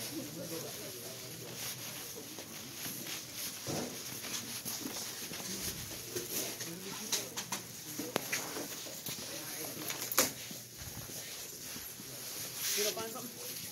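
Footsteps tap on a hard floor close by.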